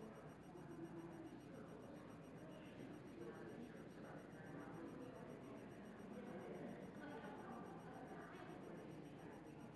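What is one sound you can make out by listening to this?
Several adult men and women chat quietly in a large echoing room.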